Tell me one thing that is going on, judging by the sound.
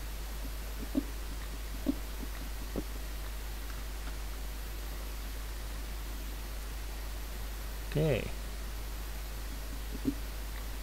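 Stone crumbles in short cracks as a pickaxe breaks blocks.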